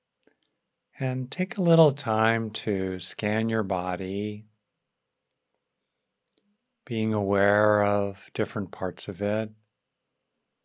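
A middle-aged man speaks calmly and slowly into a close microphone.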